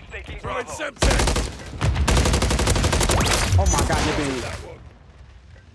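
Rapid gunfire rattles loudly in a video game.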